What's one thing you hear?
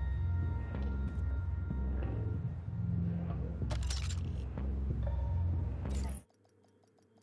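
Gunfire and game action sounds play loudly.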